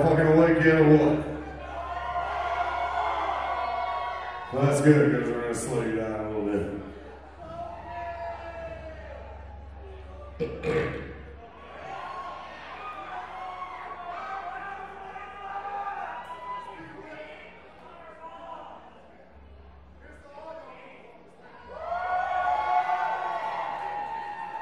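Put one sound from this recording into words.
A drummer plays a drum kit.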